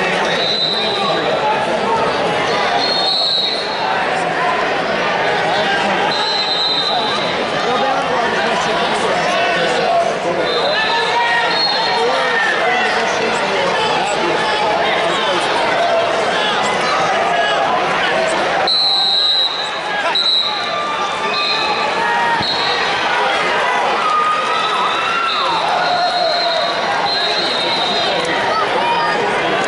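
A referee's whistle blows in short blasts.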